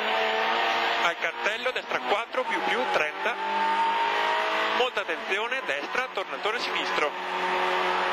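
A man reads out directions quickly over the engine noise.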